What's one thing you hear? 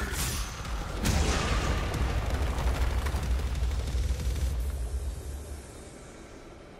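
A large explosion bursts with a deep rumble and shattering debris.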